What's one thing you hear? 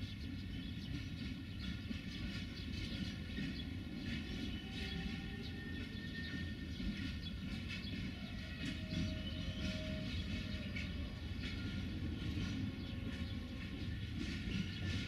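Freight wagon wheels rumble slowly along the rails close by.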